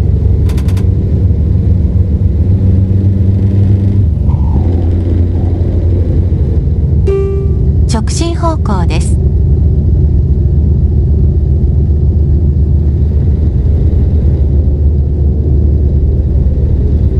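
A truck engine drones steadily with a low rumble.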